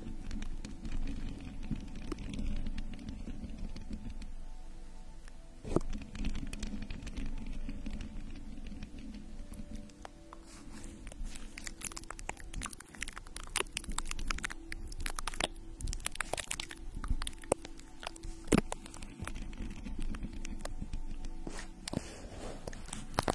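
Fingernails tap and scratch on a microphone, very close.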